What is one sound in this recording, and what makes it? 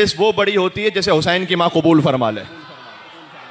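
A man speaks with feeling into a microphone in a reverberant hall.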